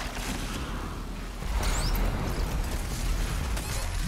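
A monster roars and growls.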